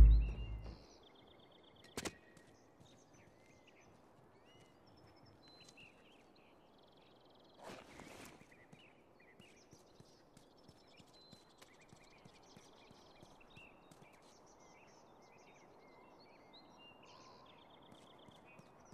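Soft footsteps creep over pavement.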